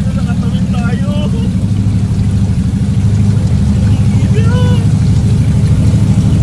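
Water sloshes and splashes inside a car.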